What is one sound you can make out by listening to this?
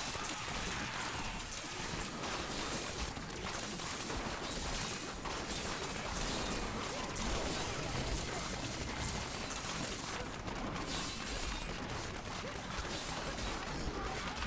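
Magic blasts and electric crackles burst in a fast, constant clash of battle.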